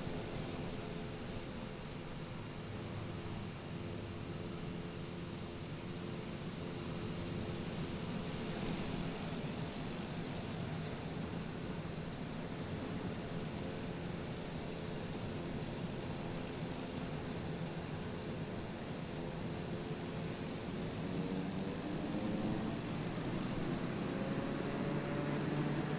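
A propeller plane's engine hums steadily at idle.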